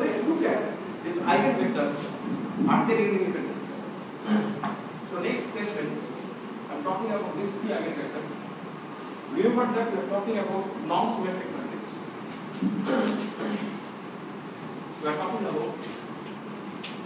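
A middle-aged man lectures aloud in a room with some echo.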